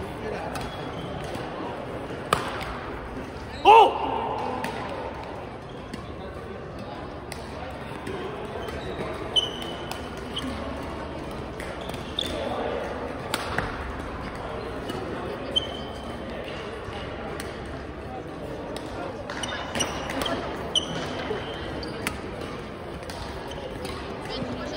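Sounds echo in a large hall.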